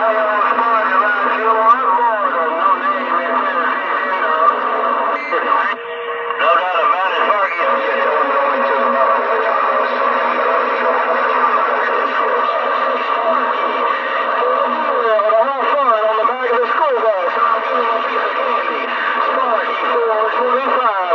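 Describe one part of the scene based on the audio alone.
A radio loudspeaker crackles with distorted, warbling transmissions.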